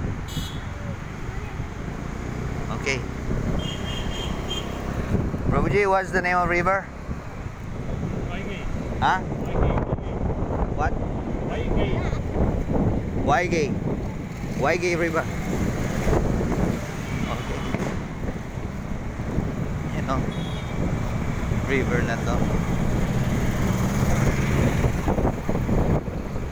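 A motor scooter engine hums steadily while riding along a road.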